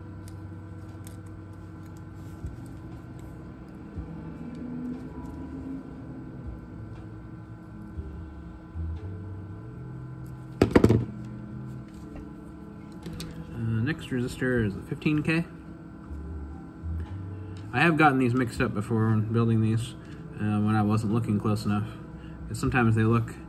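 Small metal parts click softly between fingers.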